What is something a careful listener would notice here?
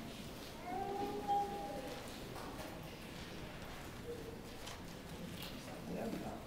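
A young man speaks slowly into a microphone in an echoing room.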